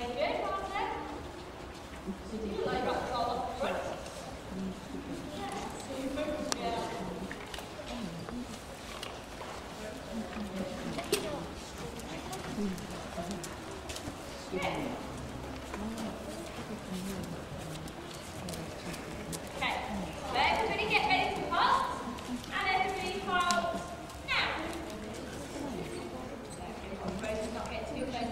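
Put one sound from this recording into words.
Children and women talk nearby in a large echoing hall.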